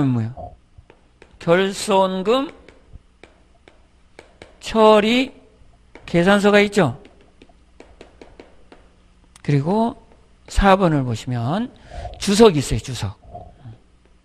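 A middle-aged man lectures into a close microphone with animation, in bursts with pauses.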